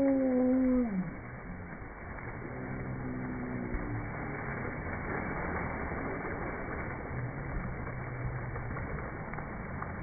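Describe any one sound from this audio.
Water splashes loudly as a child lands in a slide's pool.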